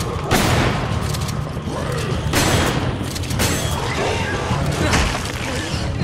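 A monster growls and roars loudly.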